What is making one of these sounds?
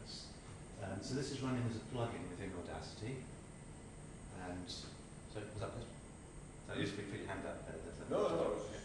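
A man speaks to an audience in a room with some echo.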